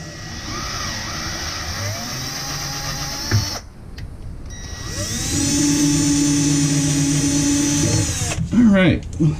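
A power tool whirs, speeding up and slowing down.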